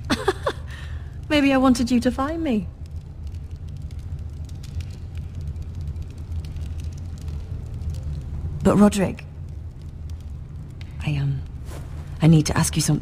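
A young woman speaks softly and hesitantly, close by.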